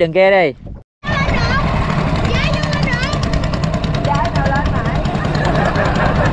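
A small boat motor rumbles steadily.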